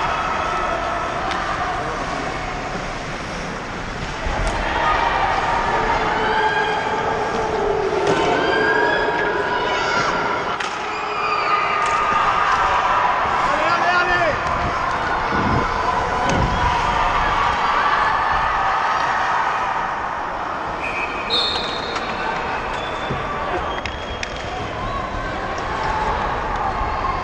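A crowd of players and spectators shouts and cheers in a large echoing arena.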